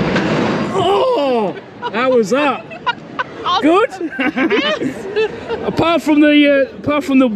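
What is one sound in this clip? A woman talks and laughs close by.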